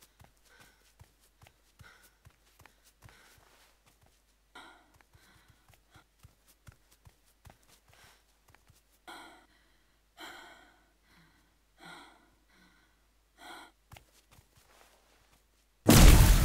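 Footsteps patter quickly over grass and earth.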